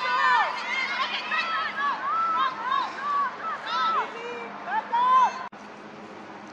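Young players shout and cheer excitedly outdoors.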